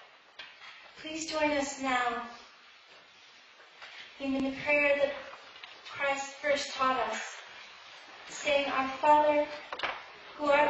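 A woman speaks slowly through a microphone in a large echoing hall.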